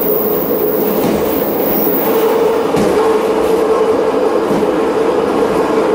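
Train wheels squeal on a curve.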